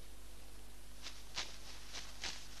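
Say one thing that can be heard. Grass rustles and snaps as hands pull at it.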